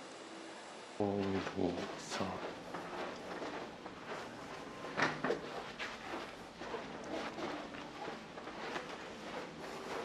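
Footsteps walk on a carpeted floor.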